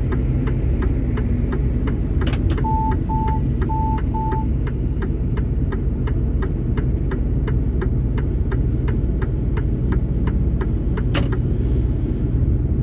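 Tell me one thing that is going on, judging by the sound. A vehicle's engine rumbles steadily as it drives.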